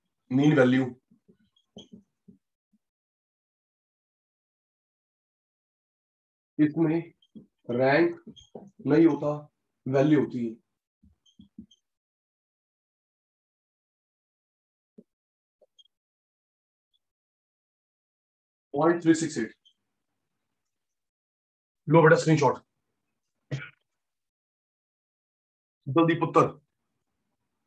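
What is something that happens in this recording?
A man speaks through a close microphone in short bursts, with long pauses in between.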